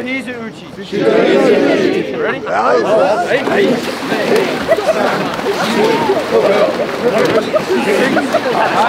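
A crowd of men and women yell and cheer excitedly.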